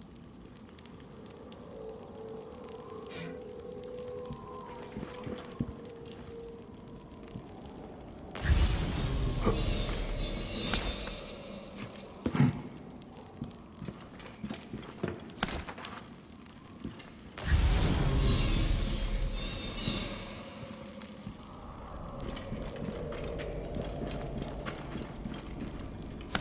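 A torch flame crackles and roars.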